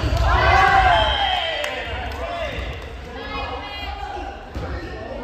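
Young women call out to each other in a large echoing gym.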